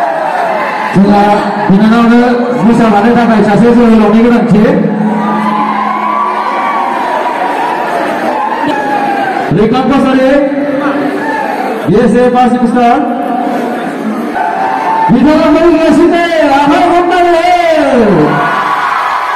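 A young woman sings through a loudspeaker.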